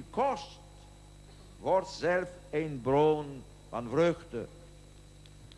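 An elderly man speaks slowly into a microphone, amplified over loudspeakers.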